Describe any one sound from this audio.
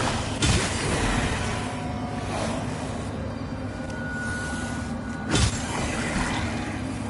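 A magical energy swirls with a shimmering whoosh.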